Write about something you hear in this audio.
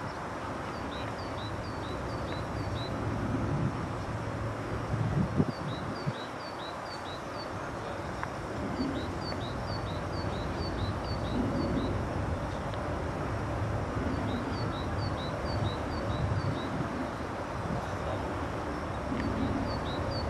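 A dog sniffs at the grass close by.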